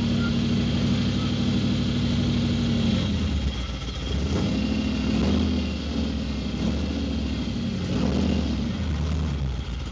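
An engine revs and labours loudly as a vehicle churns through mud.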